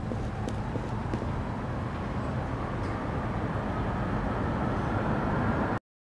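Footsteps scuff on a hard ground.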